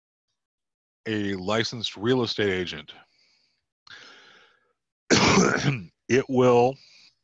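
A man speaks calmly through an online call microphone, in short phrases.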